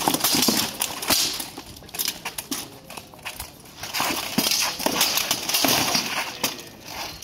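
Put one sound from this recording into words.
Swords strike shields and armour in sharp metallic bangs.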